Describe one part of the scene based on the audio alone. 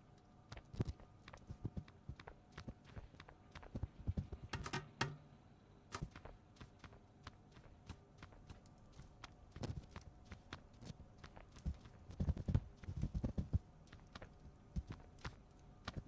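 Footsteps patter on a hard floor.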